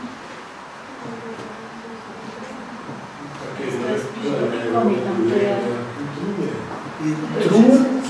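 A man lectures with animation in a room.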